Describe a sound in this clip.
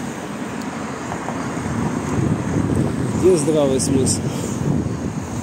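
A car drives past nearby.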